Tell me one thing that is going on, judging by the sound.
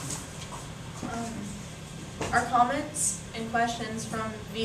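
A young woman speaks aloud in a room, reading out.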